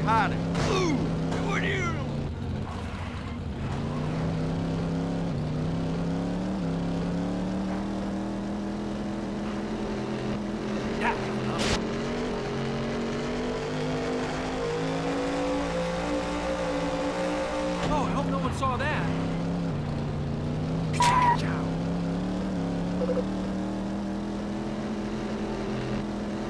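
A racing car engine roars steadily, rising in pitch as it speeds up and dropping as it slows.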